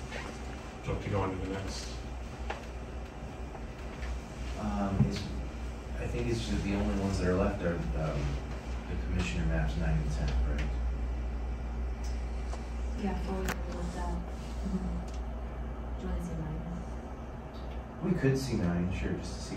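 Several men and women talk calmly, heard from across the room.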